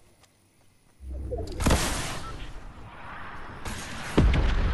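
A motorbike engine roars.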